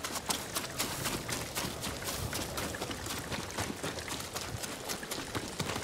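Footsteps run quickly through rustling grass.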